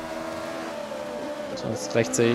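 A racing car engine drops in pitch as it shifts down a gear.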